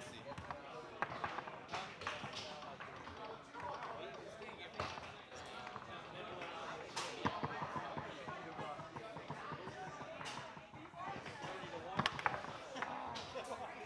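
A foosball is struck and clacks against the table walls.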